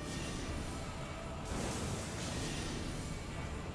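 Magic blasts crackle and rumble.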